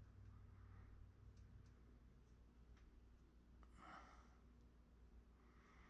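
Fingers rub and smooth soft clay.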